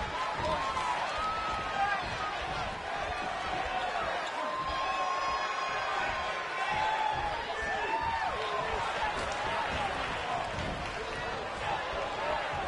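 A large crowd cheers loudly in an echoing hall.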